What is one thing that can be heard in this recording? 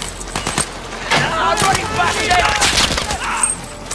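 Men shout nearby.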